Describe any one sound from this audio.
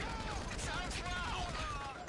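Gunshots fire in quick bursts nearby.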